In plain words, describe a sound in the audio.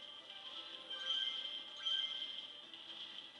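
Electric sparks crackle and zap in short bursts.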